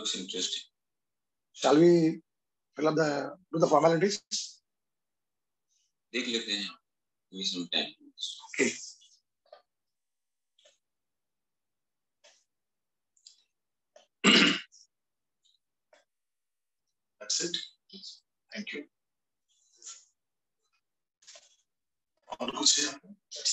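A man speaks calmly in short bursts with pauses.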